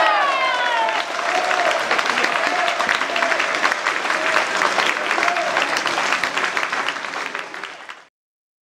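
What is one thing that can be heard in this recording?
A small crowd of spectators applauds in a large indoor hall.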